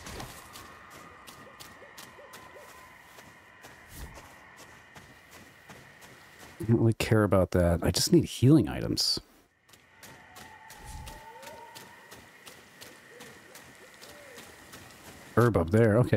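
Footsteps rustle softly through undergrowth.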